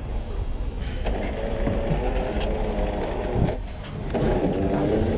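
A coffee machine whirs and hums steadily.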